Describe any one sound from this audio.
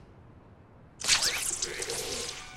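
A sharp spraying hiss bursts out and trails off.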